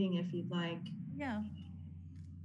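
A man speaks briefly over an online call.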